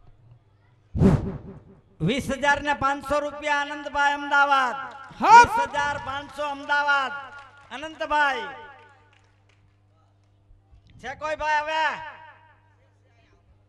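A man sings loudly through a loudspeaker, in a hall with a slight echo.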